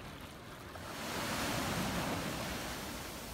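Waves wash up onto a beach.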